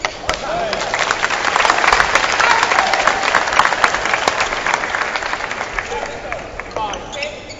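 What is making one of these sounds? A crowd applauds in a large indoor arena.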